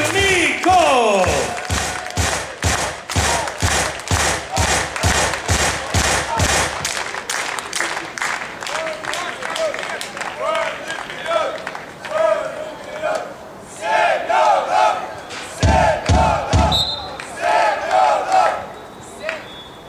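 A crowd of spectators claps in a steady rhythm.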